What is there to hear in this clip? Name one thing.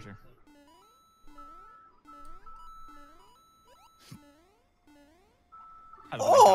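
Short electronic game sound effects chirp repeatedly.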